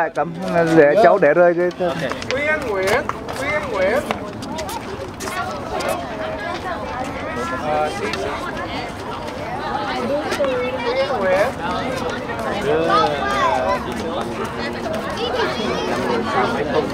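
Many children chatter and call out together outdoors.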